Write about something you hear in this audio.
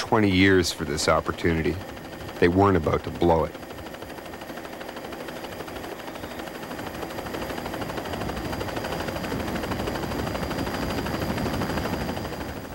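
A helicopter engine drones steadily, heard from inside the cabin.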